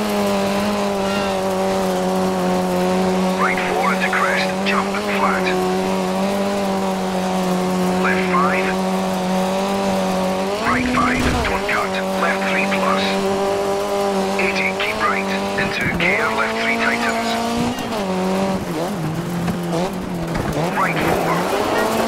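Gravel crunches and sprays under the tyres.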